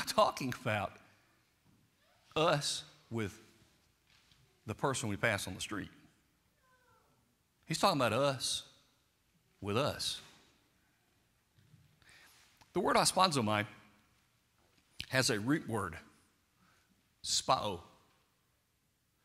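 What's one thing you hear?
An older man speaks with animation through a microphone, in bursts with pauses, in an echoing hall.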